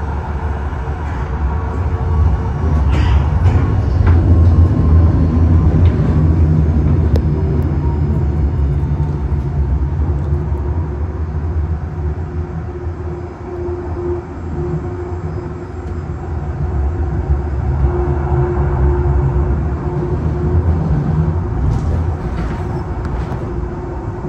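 A small train rumbles and clatters steadily along its track.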